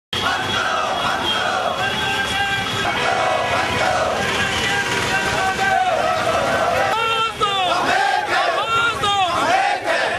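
A crowd of men chants loudly outdoors.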